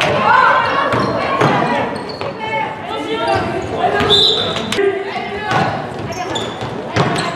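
A basketball thuds as it bounces on the court.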